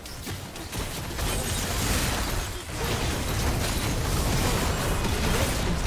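Game spell effects whoosh and crackle in a busy battle.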